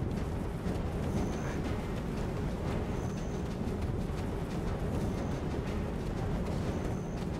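A blade whooshes through the air in quick swings.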